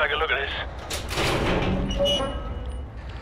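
A metal container door creaks open.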